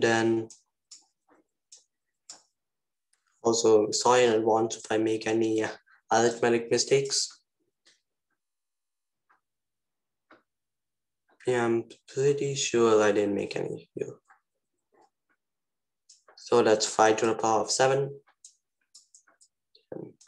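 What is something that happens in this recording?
A young man speaks calmly and closely into a microphone, explaining in short bursts with pauses.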